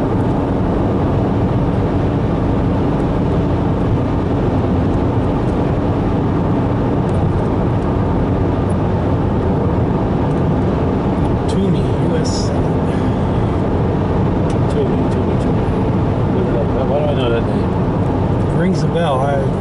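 A car's engine and tyres hum steadily on a highway, heard from inside the car.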